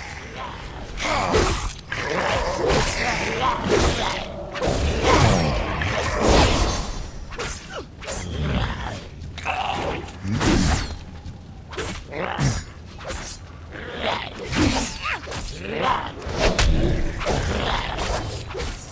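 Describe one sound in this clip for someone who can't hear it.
Spells and weapons clash and crackle in a fierce fight.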